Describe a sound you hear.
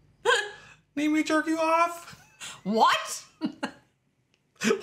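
A man laughs and speaks cheerfully close to a microphone.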